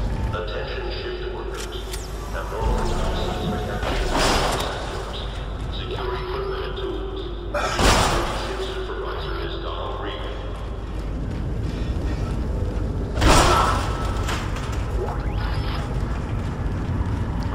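Heavy armoured boots thud on a metal floor.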